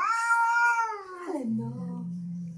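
A cat meows loudly and long, close by.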